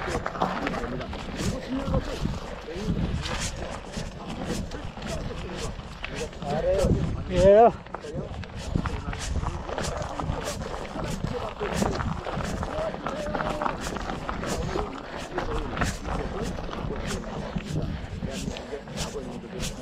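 Footsteps crunch on dry leaves and gravel, close by.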